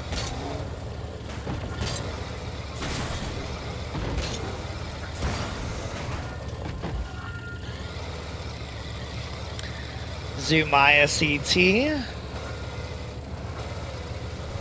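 Car engines hum and rev steadily.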